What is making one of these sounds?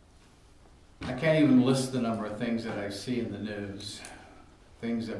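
An elderly man speaks calmly into a microphone in a quiet, slightly echoing room.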